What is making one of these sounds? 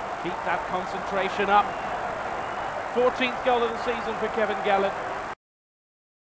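A large crowd cheers loudly in a stadium.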